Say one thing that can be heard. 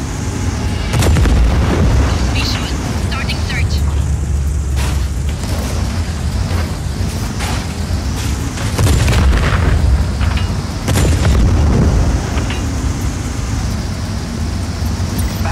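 Explosions blast and roar.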